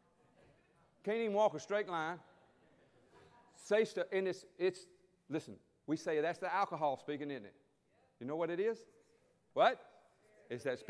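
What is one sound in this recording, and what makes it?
A middle-aged man speaks with animation through a microphone in a large echoing hall.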